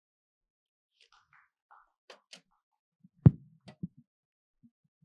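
A woman speaks briefly and quietly into a microphone.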